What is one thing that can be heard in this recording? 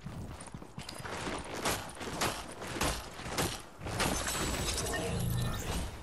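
A pickaxe swooshes and strikes with sharp hits.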